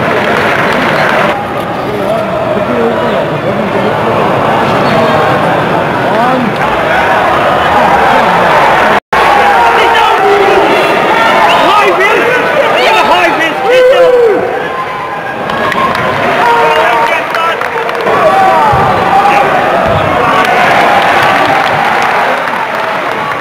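A large crowd of fans chants and sings loudly outdoors.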